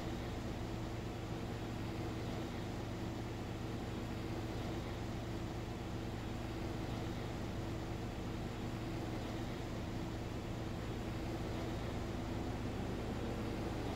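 A combine harvester cuts and threshes grain with a steady whir.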